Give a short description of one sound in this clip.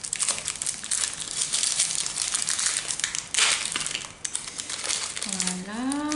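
Thin plastic crinkles and rustles between fingers.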